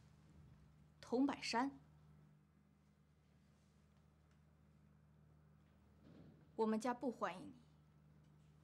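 A young woman speaks curtly, close by.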